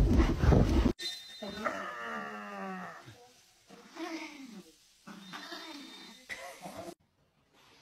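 A small dog yelps and whines in short high cries.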